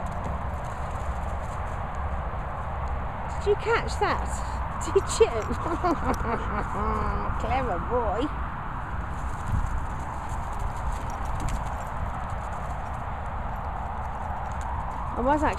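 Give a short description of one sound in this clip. A dog runs across grass.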